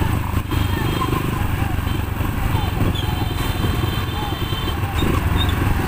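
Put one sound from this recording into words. A motorcycle engine hums nearby.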